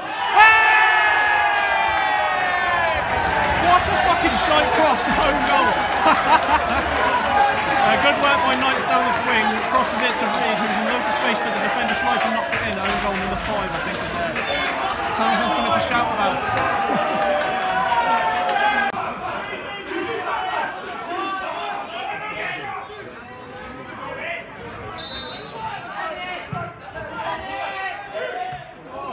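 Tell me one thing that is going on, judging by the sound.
A crowd of football fans sings and chants loudly outdoors.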